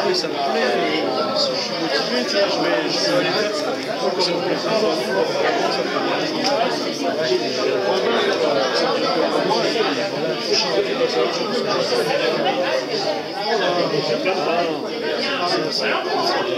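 A young boy talks quietly and close by.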